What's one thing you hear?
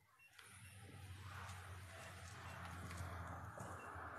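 Footsteps scuff down concrete stairs.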